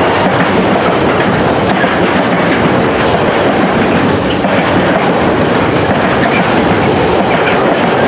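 A long freight train rumbles past on the tracks, its wheels clattering steadily.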